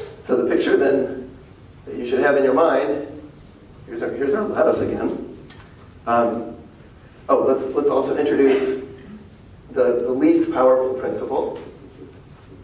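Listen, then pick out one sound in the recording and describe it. A man speaks calmly in a lecture.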